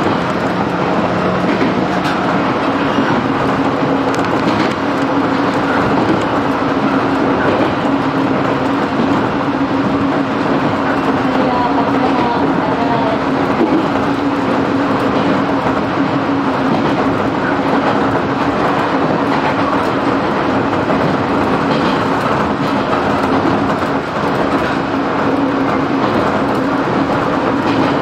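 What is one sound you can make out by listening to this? A train's motor hums with a low, steady drone.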